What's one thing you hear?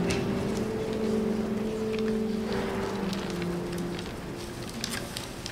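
A choir of men and women sings a sustained chord that fades away in a large echoing church.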